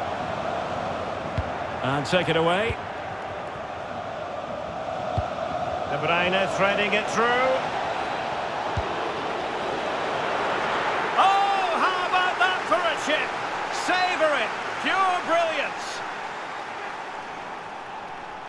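A large stadium crowd roars steadily, swelling as a goal is scored.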